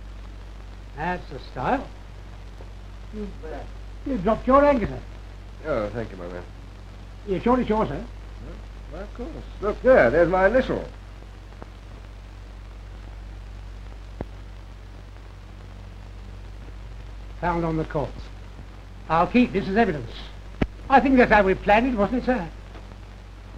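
An elderly woman talks nearby.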